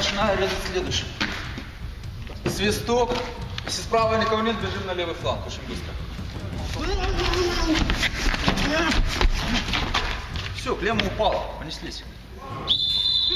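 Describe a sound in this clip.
A man speaks loudly in a large echoing hall.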